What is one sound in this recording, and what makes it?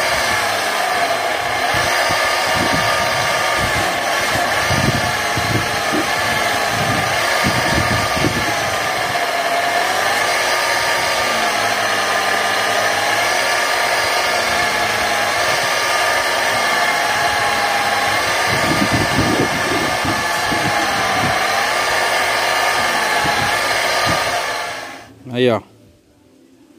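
A bench grinder motor whirs steadily, then shuts off and winds down.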